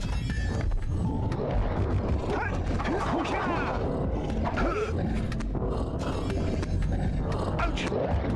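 Video game music and sound effects play.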